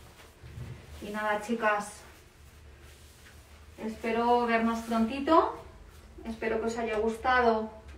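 A woman speaks nearby in a calm, clear voice.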